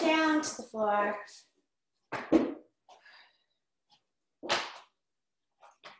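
A rubber mat flaps and slaps onto a wooden floor.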